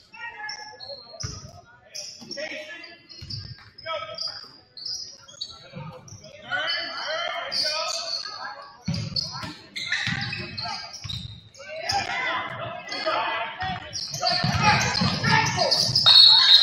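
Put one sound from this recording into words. A crowd of spectators cheers and shouts, growing louder.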